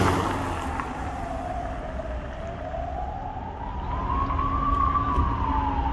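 A siren wails, slowly rising and falling.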